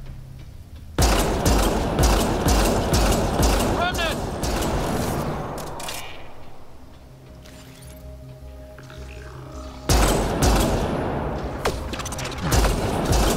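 A rifle fires a rapid series of loud shots.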